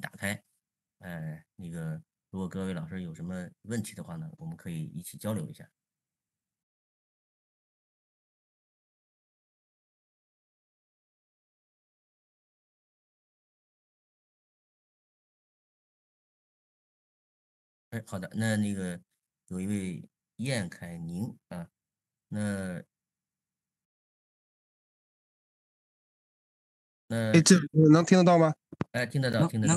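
A man speaks calmly over an online call, in short bursts with long pauses.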